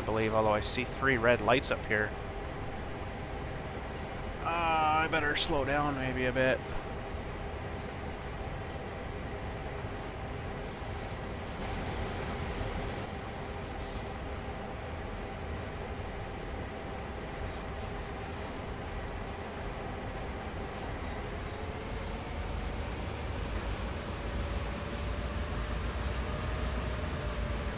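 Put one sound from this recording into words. A diesel locomotive engine rumbles steadily.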